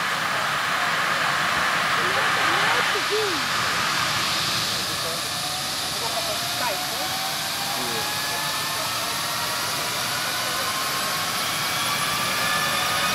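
A helicopter's rotor blades whoosh as they spin.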